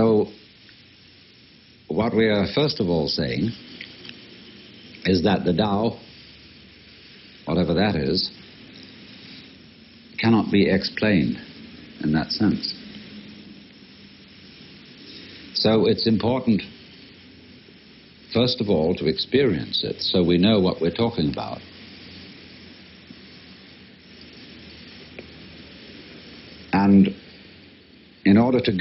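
A man speaks calmly, in short phrases with pauses.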